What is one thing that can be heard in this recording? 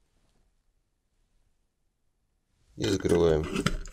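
A plastic lid screws onto a glass jar with a soft scrape.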